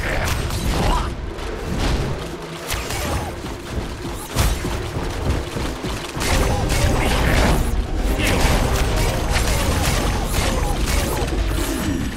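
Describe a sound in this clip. Cartoonish fighting blows and magic zaps hit with sharp impacts.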